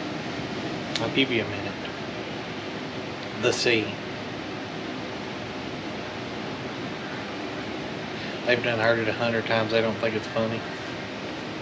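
A man talks casually up close.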